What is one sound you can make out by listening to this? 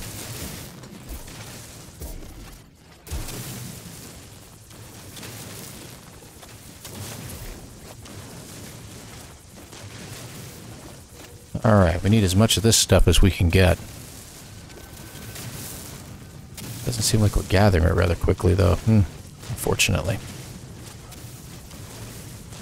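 A mining laser hums steadily.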